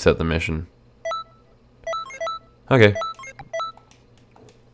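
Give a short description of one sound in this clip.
Short electronic beeps chime several times.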